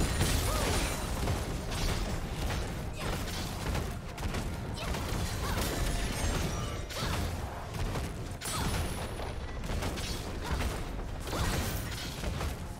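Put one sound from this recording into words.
Game characters' weapons clash and strike repeatedly.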